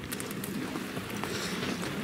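An elderly man speaks into a microphone outdoors.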